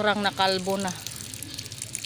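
Water pours and splashes onto soil.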